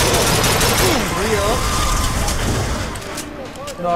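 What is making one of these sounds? A rifle fires in bursts.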